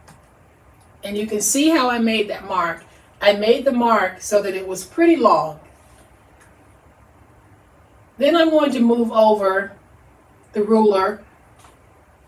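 A woman talks calmly and clearly into a close microphone.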